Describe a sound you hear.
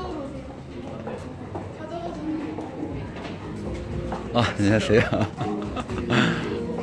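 A crowd of men and women chatters in a large echoing hall.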